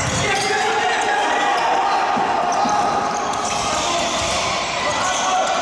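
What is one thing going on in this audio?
Sneakers squeak on an indoor court floor in a large echoing hall.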